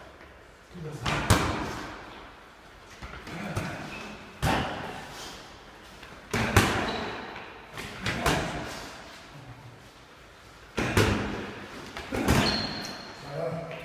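Sneakers squeak and shuffle on a wooden floor.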